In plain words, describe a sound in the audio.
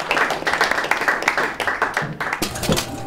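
An audience claps loudly and briskly.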